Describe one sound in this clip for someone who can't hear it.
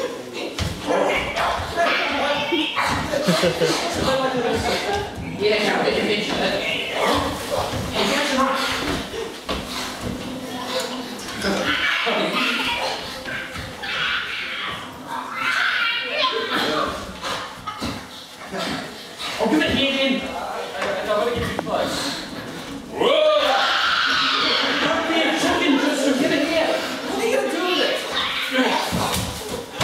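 A woman cries out and speaks with strong emotion.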